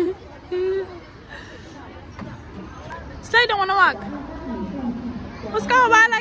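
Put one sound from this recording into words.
A toddler squeals and babbles excitedly close by.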